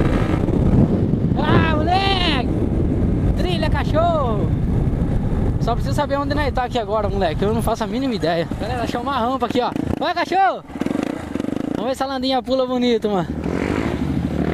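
A single-cylinder four-stroke dirt bike revs up and down on a dirt track.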